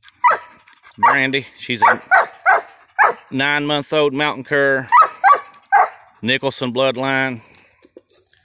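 A dog yelps and howls in long, wavering cries.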